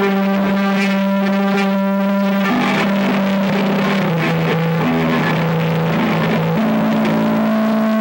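An electric bass plays a low line.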